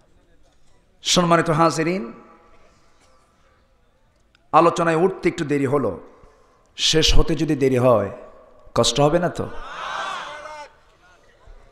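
A man chants in a melodic voice through a microphone and loudspeakers, in bursts with pauses.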